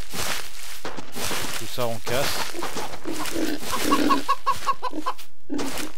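Wheat stalks are broken with soft crunching sounds.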